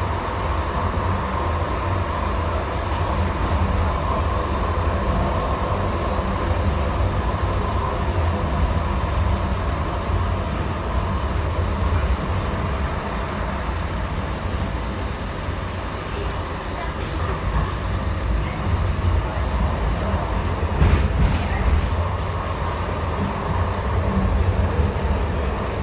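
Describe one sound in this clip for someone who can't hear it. A train car rumbles and rattles steadily along the tracks.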